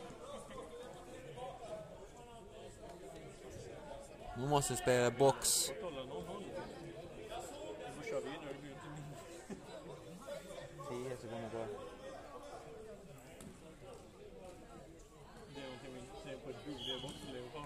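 Spectators chatter nearby in a large echoing hall.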